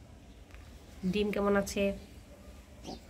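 A pigeon coos softly close by.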